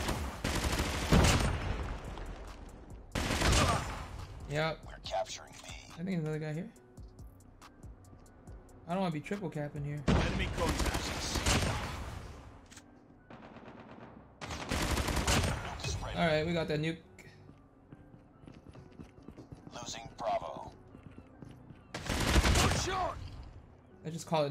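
Gunfire rattles in loud bursts from a video game.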